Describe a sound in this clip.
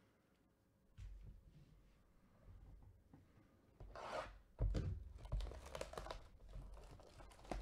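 Hands rustle and tap against a cardboard box.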